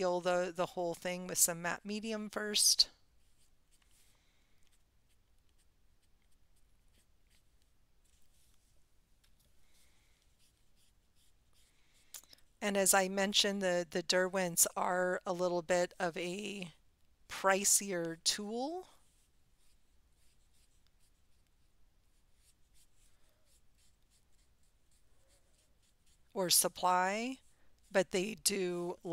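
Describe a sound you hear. A woman talks calmly close to a microphone, pausing between phrases.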